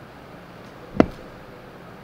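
A rifle butt knocks sharply on a stage floor.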